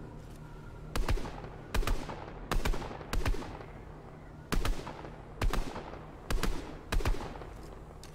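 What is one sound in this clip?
Rifle shots fire loudly in a rapid series.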